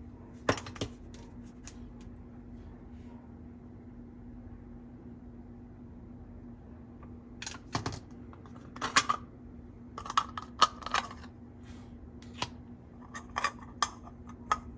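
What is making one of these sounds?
Plastic toys click and clatter as they are handled.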